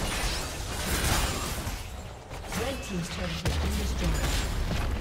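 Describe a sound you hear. Game spell effects crackle and boom during a fight.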